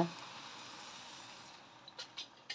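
Liquid pours into a metal pan and sizzles softly.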